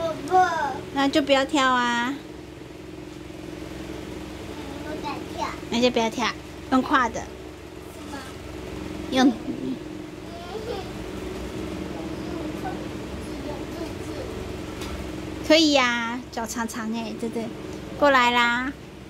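A young boy talks in a high, lively voice close by.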